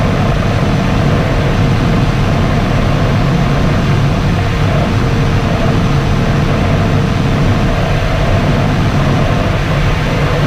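Air rushes steadily past a glider's canopy in flight.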